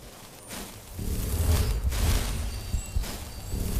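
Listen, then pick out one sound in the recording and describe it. A magic spell crackles and hums loudly.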